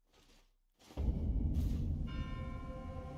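A deep boom sounds.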